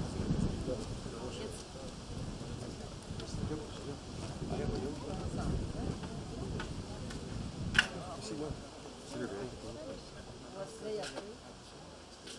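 A man talks casually nearby, outdoors.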